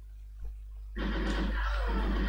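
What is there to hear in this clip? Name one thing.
A shotgun fires in a video game.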